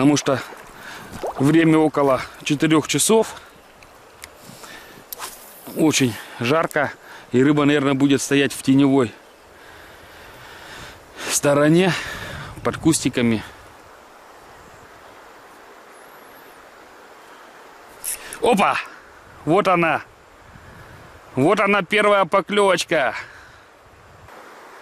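River water ripples and laps softly.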